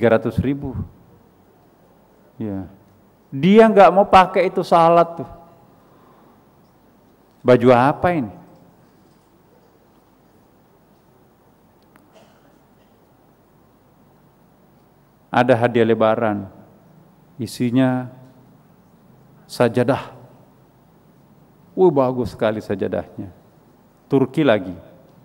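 A middle-aged man speaks slowly and deliberately into a microphone, with long pauses, in a room with a slight echo.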